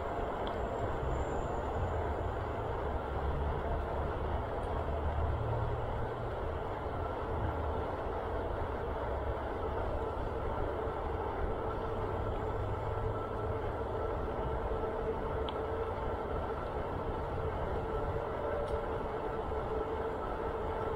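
Wind rumbles and buffets steadily outdoors.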